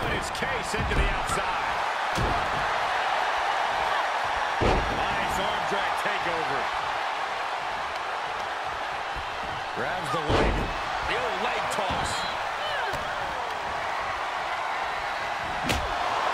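Heavy thuds of bodies slamming onto a wrestling ring mat.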